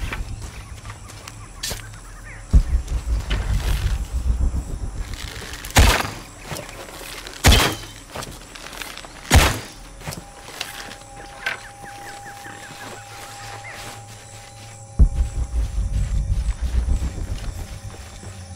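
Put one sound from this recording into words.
Footsteps crunch on a forest floor.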